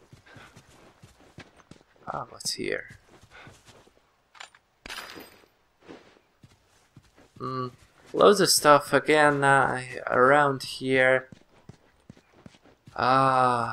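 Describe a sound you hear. Footsteps crunch over gravel and grass.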